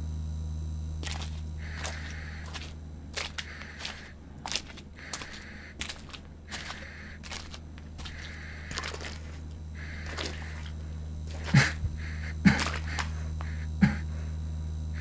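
Footsteps thud softly on carpet.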